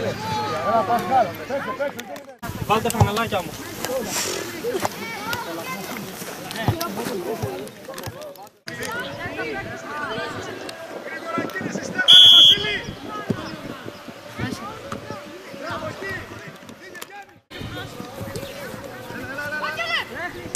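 Children shout and call out outdoors.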